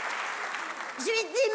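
A woman begins singing into a microphone.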